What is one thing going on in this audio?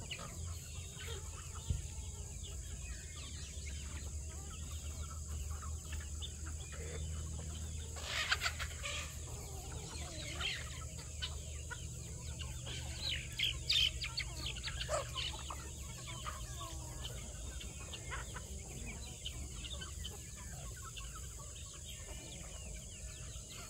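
Many chickens cluck and chirp nearby.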